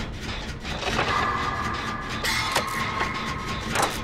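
A short electronic tone sounds.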